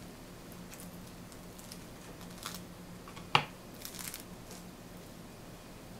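Hands tear apart a slice of toasted bread, the crust crackling.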